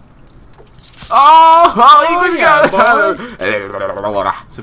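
A young man shouts and laughs excitedly through a microphone.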